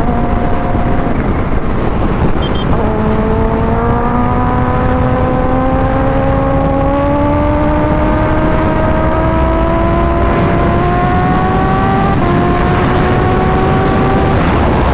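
A motorcycle engine roars and climbs in pitch as it speeds up through the gears.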